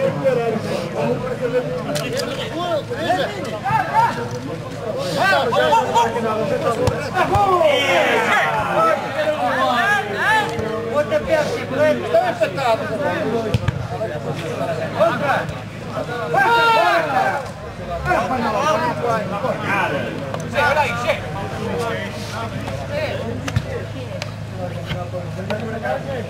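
A crowd of spectators chatters and shouts close by outdoors.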